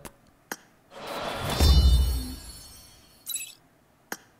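A bright electronic level-up fanfare sweeps in with a whoosh.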